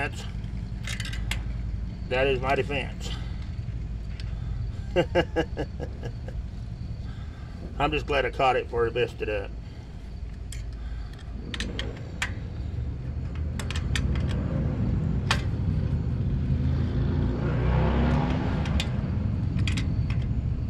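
Metal parts of a bicycle wheel click and tick.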